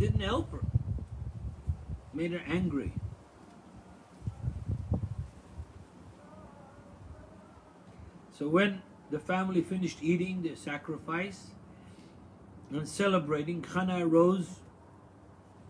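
An elderly man speaks slowly and calmly close to a microphone, with long pauses.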